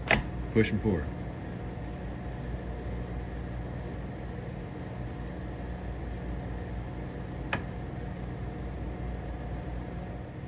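Beer fills a cup from below with a soft, steady fizzing hiss.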